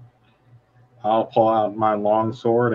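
Another man answers over an online call.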